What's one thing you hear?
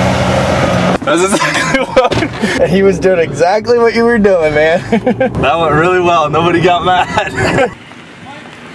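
A young man talks and laughs excitedly, close up.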